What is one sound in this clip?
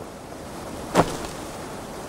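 A heavy body thuds onto soft ground.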